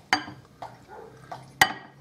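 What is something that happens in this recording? Liquid pours from a glass into a bowl of flour.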